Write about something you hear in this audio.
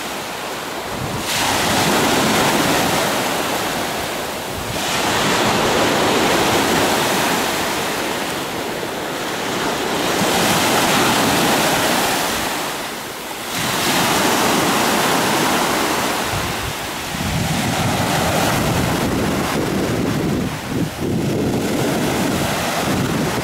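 Small waves break and wash up onto a beach, rising and falling in surges.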